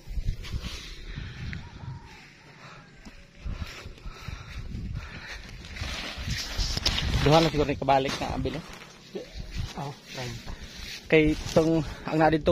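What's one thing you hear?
A man talks close to a microphone, outdoors in wind.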